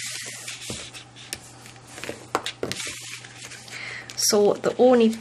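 Paper rustles and slides as hands fold it.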